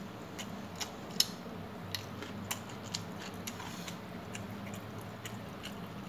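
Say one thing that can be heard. A person chews food with soft, wet mouth sounds.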